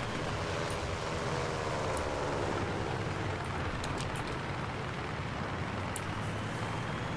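A tracked vehicle's engine rumbles steadily as it drives.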